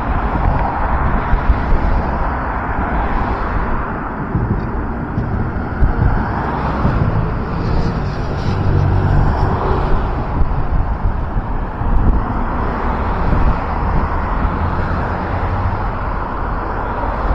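City traffic rumbles steadily outdoors.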